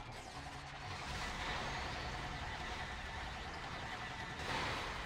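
A laser cannon fires with a loud roaring blast.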